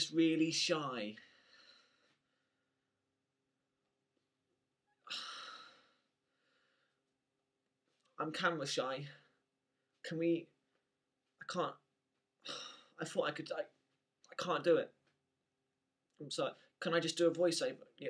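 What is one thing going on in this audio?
A young man talks casually, close to the microphone, with pauses.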